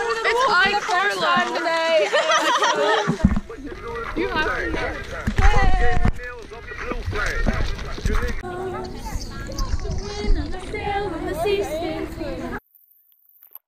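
Young women talk and laugh loudly close by.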